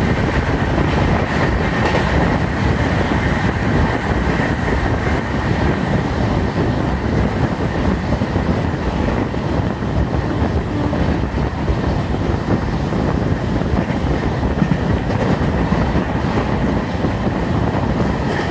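A train rattles along the tracks at speed.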